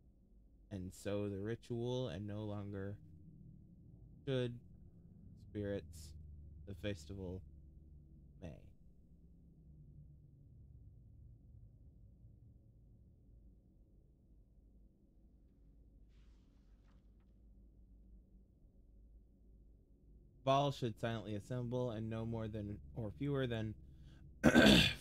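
A man talks calmly and close to a microphone, in bursts.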